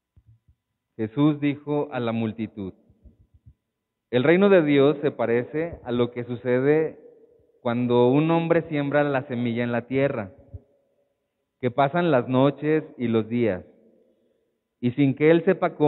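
A man speaks calmly into a microphone, heard through a loudspeaker in an echoing hall.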